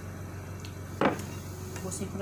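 A mug knocks down onto a table.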